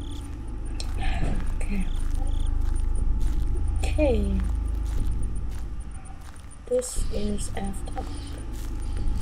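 A teenage boy speaks briefly and quietly close to a microphone.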